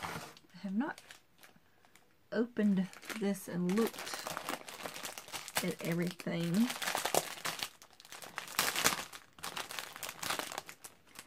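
Plastic packaging crinkles and rustles in hands.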